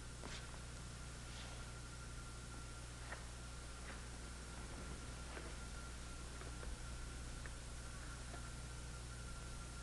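Bare feet pad softly on a mat.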